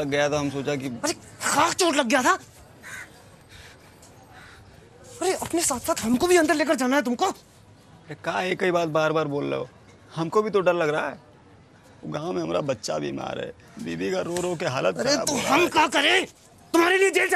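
An elderly man speaks calmly and firmly, close by.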